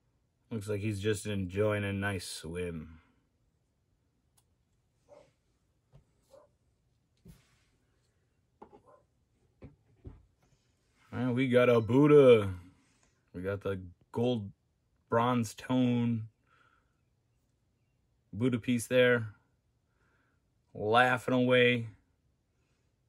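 A young man talks calmly and close to a microphone, in short bursts with pauses.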